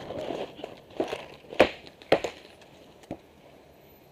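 Paintball guns fire a few sharp pops close by.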